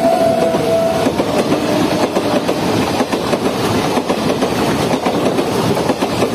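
A passenger train rushes past close by, wheels clattering on the rails.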